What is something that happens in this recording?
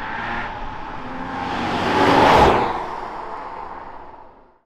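A second car races past close by and fades away.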